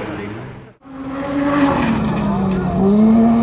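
A buggy engine roars loudly close by as it speeds past.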